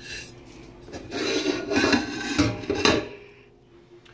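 A metal pan clatters against a sink as it is handled.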